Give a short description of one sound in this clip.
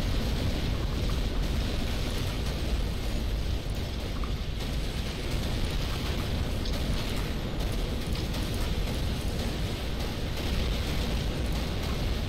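Explosions and weapon fire rumble steadily in a battle.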